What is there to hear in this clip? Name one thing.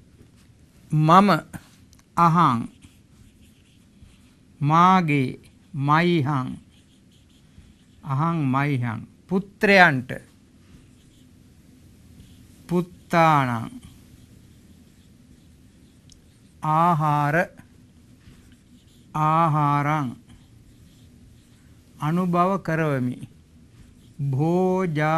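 A man speaks slowly and calmly in short, drawn-out phrases, with pauses between them.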